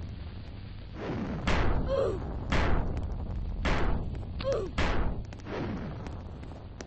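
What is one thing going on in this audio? Explosions boom loudly, one after another.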